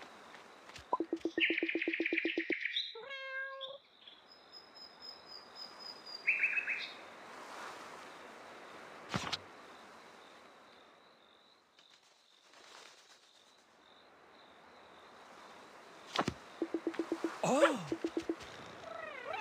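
Short cheerful electronic chimes play.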